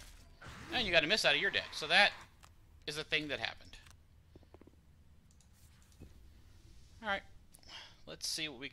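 A middle-aged man talks with animation into a close microphone, in bursts with pauses.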